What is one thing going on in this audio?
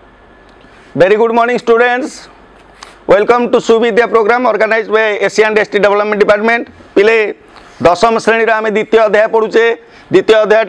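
A man speaks clearly and steadily, close to a microphone, as if teaching.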